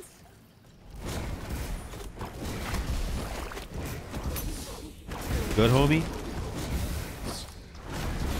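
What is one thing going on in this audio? Spell effects crackle and boom in a fight.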